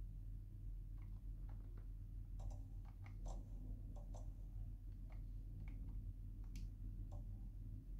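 Buttons on a handheld game console click softly.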